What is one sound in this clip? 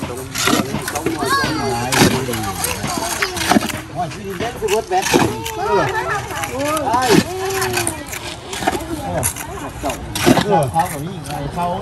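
Many voices of men and women chatter and call out nearby, outdoors.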